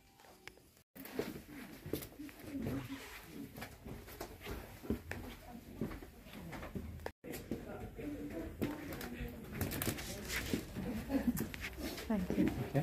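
Footsteps climb stairs and cross a floor.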